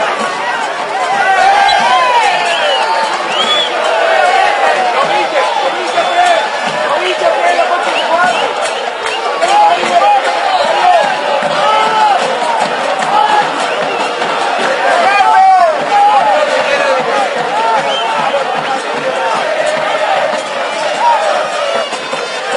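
A crowd chatters and calls out from the stands.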